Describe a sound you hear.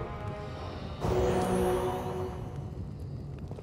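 A magic spell bursts with a bright, ringing whoosh.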